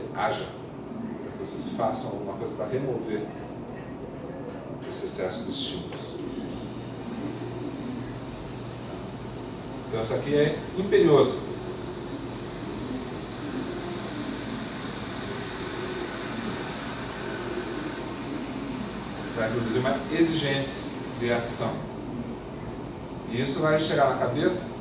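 A man speaks at a distance, lecturing with pauses.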